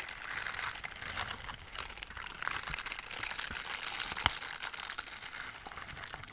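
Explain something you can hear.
Silicone scrubber gloves rub and rustle close to a microphone.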